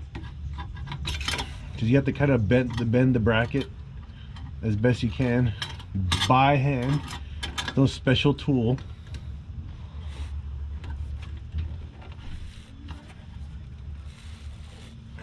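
Metal tools clink and scrape under a car.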